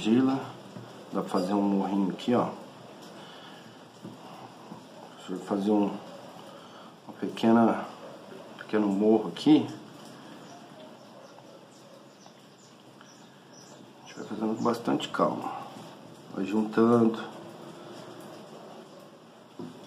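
Hands press and smear soft wet clay with quiet squelching.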